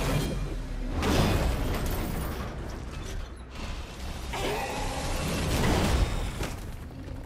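A heavy blast bursts with crackling debris.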